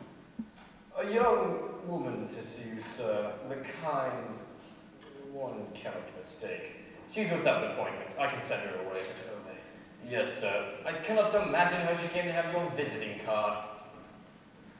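A young man speaks on stage with feeling, heard from across a large echoing hall.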